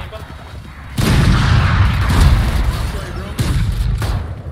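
Gunshots blast close by.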